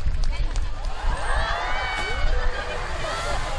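Orcas whistle and squeal.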